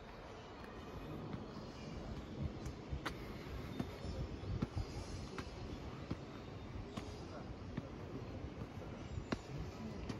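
Footsteps tap on concrete steps at a steady walking pace.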